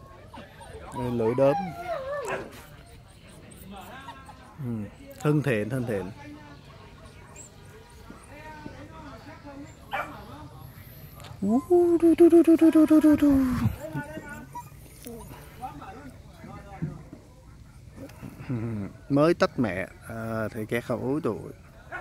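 A dog whines in high, bending cries.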